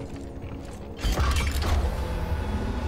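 A heavy mechanical door slides open with a loud hiss.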